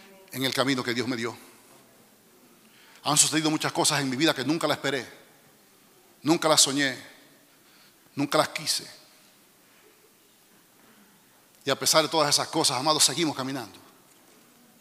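A middle-aged man speaks with animation through a microphone in short bursts, with pauses.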